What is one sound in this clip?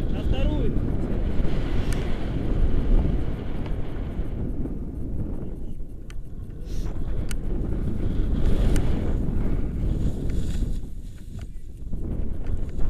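Wind buffets loudly against a microphone outdoors.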